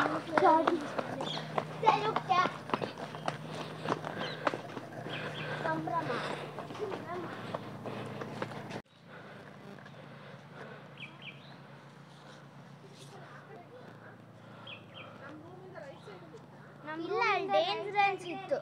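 Footsteps patter along a paved path outdoors.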